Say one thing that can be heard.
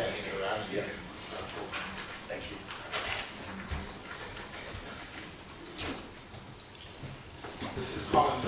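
A man speaks calmly at a distance.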